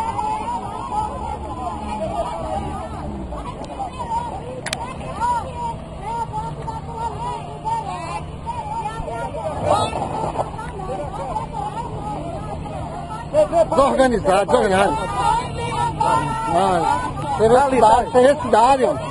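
Several women talk and shout excitedly close by, outdoors.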